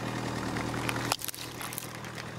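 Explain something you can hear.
A car tyre crushes a plastic bottle with a sharp crack.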